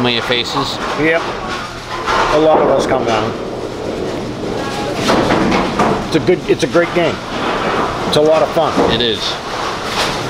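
A pinsetter machine clatters as it sweeps the pins.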